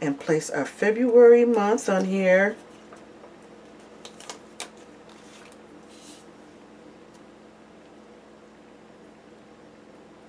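Paper rustles and crackles as a sticker is peeled and pressed down.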